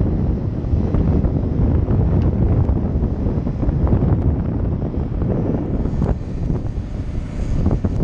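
Wind buffets the microphone loudly.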